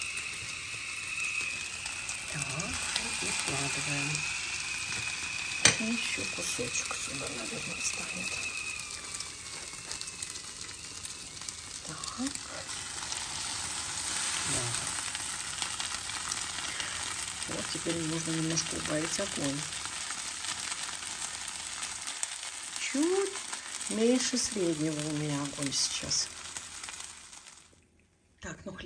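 Butter and egg-soaked bread sizzle steadily in a hot frying pan.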